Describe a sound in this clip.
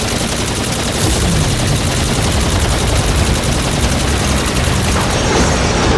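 A large explosion booms and roars.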